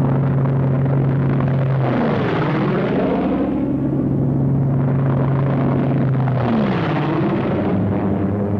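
A propeller plane roars low overhead, and its engine drops in pitch as it passes.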